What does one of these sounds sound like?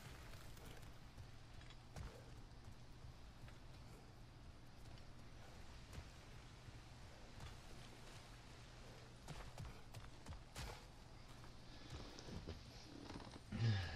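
Heavy footsteps crunch on dirt and stone.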